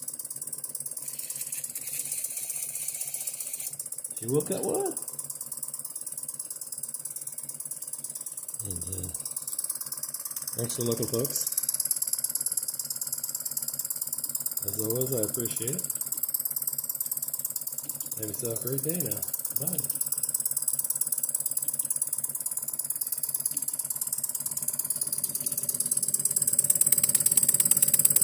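A small band saw runs with a steady light whir.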